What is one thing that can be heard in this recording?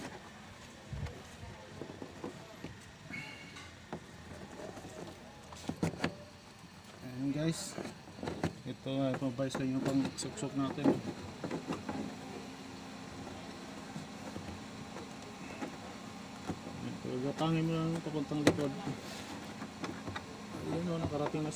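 Plastic trim clicks and knocks as hands press on it.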